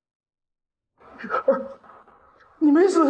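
An older man cries out in distress.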